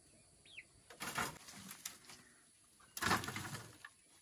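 Bunches of lychee branches rustle as they are laid onto a bamboo slat rack.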